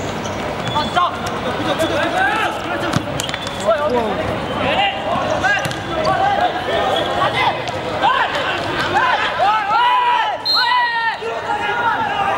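A ball thuds off a player's foot.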